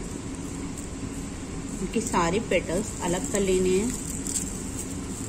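Dry petals crackle softly as hands crumble them.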